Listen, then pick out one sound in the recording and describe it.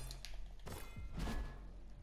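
Hands and feet clatter on a wooden ladder while climbing.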